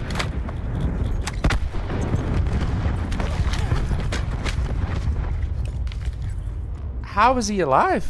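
Gunfire rattles in bursts, loud and close.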